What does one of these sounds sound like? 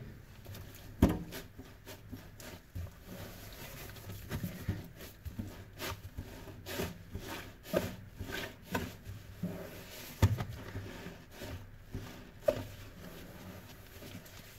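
Gloved hands squish and rub wet sponges in soapy water.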